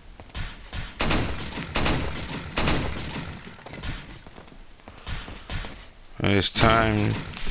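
A handgun fires gunshots.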